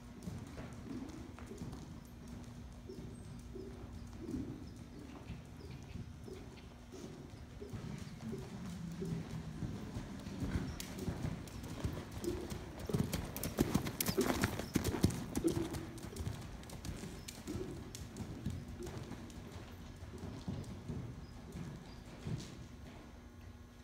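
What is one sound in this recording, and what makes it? A horse's hooves thud softly on sand, growing louder as it passes close by.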